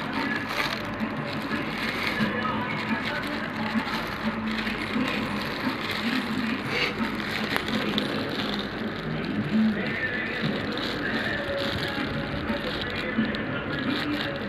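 A thin plastic bag crinkles.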